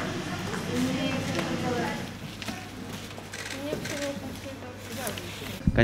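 Cardboard boxes thud as they are loaded into a van.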